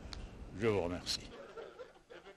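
A man speaks into microphones.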